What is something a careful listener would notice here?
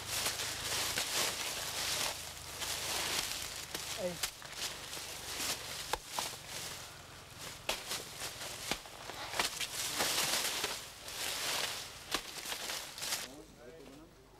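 Dry banana leaves rustle and crackle.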